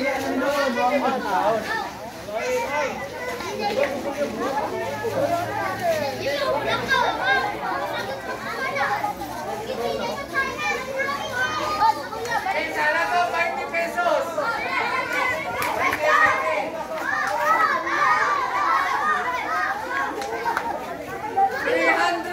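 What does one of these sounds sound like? A crowd of adults and children chatters loudly outdoors.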